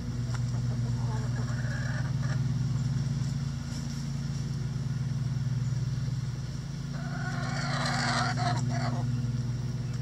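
Hens cluck softly.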